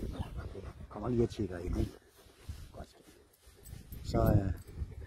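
A dog whines softly up close.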